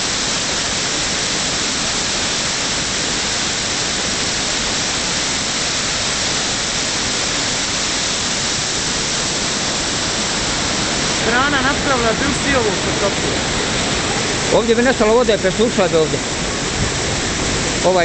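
A waterfall roars steadily, with rushing water splashing over rocks.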